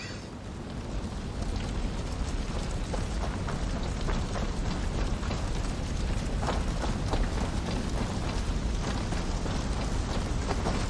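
A fire crackles and roars steadily.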